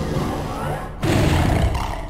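A game weapon fires rapid energy shots.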